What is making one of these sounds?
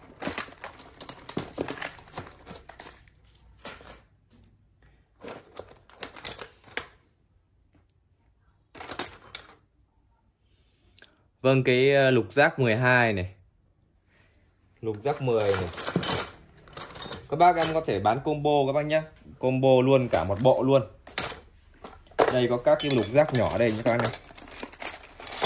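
Metal tools clink and clatter against each other.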